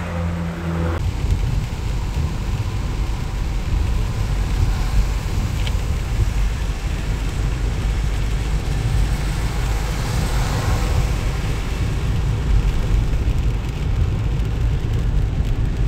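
A car engine hums steadily from inside while driving in the rain.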